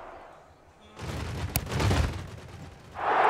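A ball is kicked with a dull thump.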